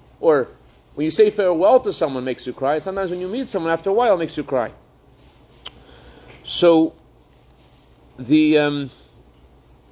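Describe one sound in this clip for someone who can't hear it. A middle-aged man speaks calmly and close to a phone microphone, in short bursts with pauses.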